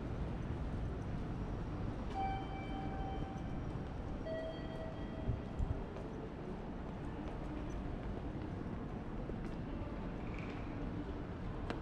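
A steady hum of a busy indoor hall fills the background.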